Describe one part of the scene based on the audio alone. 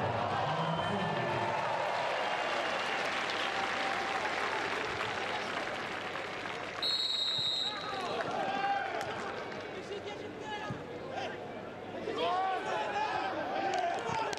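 Young men shout to each other across an open, echoing stadium.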